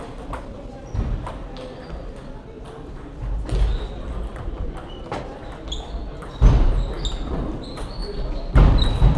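Background chatter and clatter echo in a large hall.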